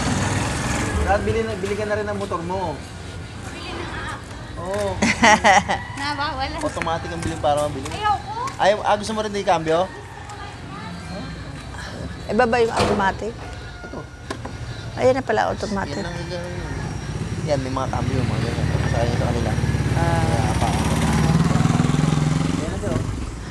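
A middle-aged woman talks with animation close to a microphone.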